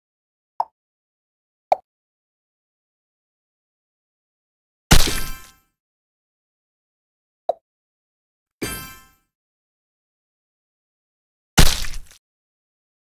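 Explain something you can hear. Short game chimes and pops sound as blocks are cleared.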